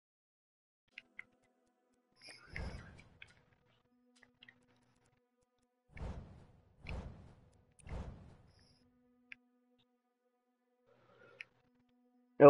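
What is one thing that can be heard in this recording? Game menu sounds click softly as options change.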